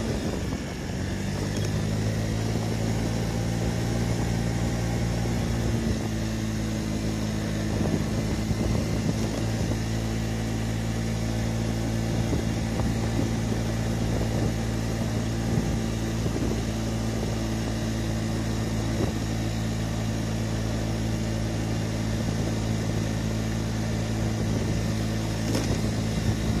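A scooter engine hums steadily up close.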